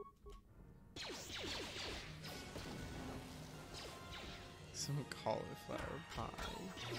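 Energy blades hum and clash in a fight.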